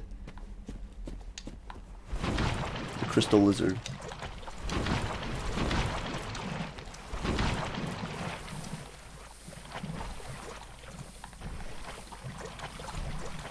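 Armored footsteps clank and scrape on stone.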